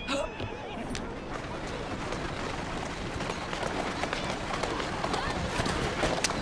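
Carriage wheels rattle over cobblestones.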